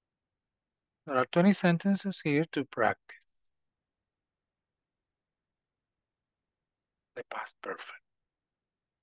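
A man speaks calmly through a microphone, in short bursts.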